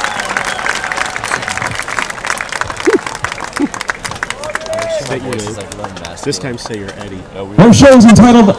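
A large crowd cheers and claps outdoors.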